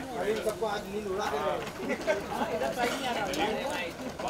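Several men and women talk and call out nearby.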